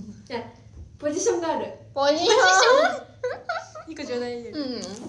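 A young woman laughs brightly.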